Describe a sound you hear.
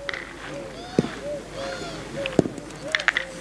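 Steel petanque boules clack against each other on gravel.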